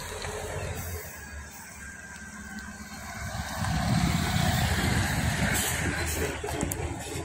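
Bus tyres roll over the road.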